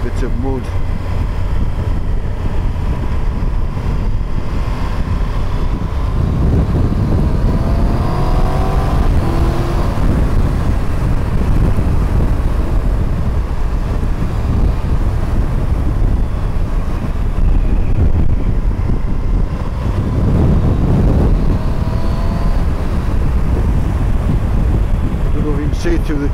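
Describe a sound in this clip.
A motorcycle engine hums steadily and rises in pitch as it speeds up.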